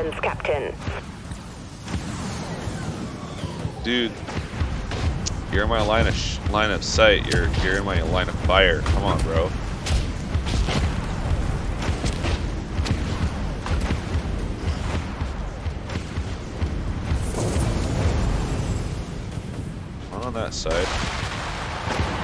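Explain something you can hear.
A spaceship engine rumbles low and steadily.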